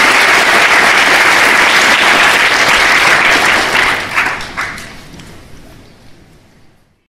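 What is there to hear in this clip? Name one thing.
A large audience applauds in an echoing hall, and the applause dies away.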